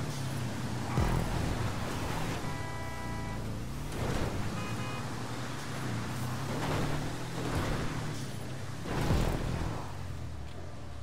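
A buggy's tyres crunch and thump over rough dirt.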